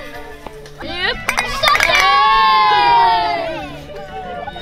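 Young children cheer and shout together nearby.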